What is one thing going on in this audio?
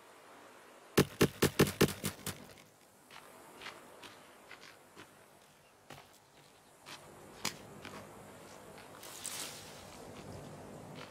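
Footsteps rustle through tall grass at a steady walk.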